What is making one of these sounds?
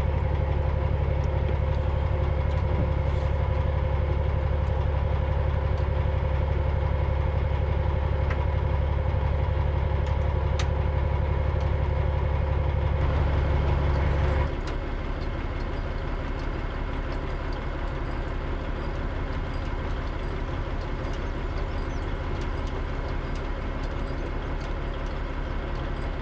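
A diesel truck engine idles with a steady low rumble nearby.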